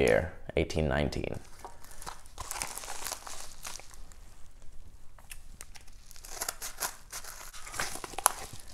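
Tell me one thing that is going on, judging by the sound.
Plastic sleeves and padded envelopes rustle and crinkle as hands handle them.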